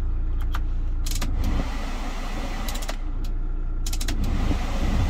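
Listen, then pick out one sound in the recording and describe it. Dashboard knobs and buttons click as they are turned and pressed.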